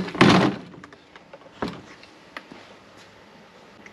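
A small engine housing knocks against a plastic truck bed.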